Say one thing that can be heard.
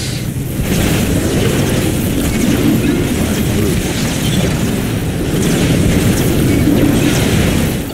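Laser guns fire and crackle in a noisy battle.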